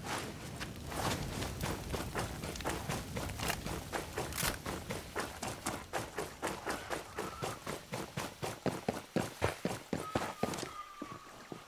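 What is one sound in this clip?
Footsteps run quickly through grass and brush.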